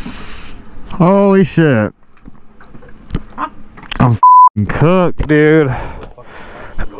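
A man exclaims excitedly close by.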